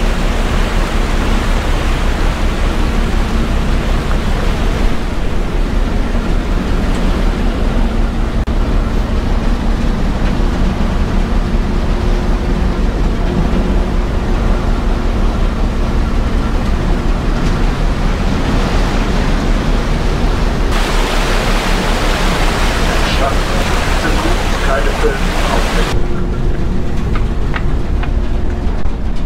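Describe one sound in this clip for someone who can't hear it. A boat engine hums steadily.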